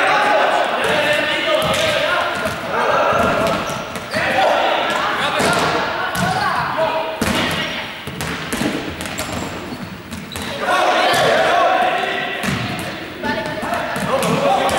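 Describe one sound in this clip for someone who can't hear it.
A large ball thumps as players knock it.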